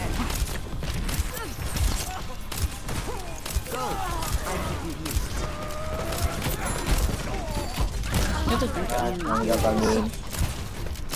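Rapid gunshots fire again and again.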